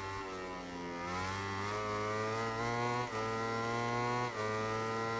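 A racing motorcycle engine screams, revving up through the gears with quick drops at each gear change.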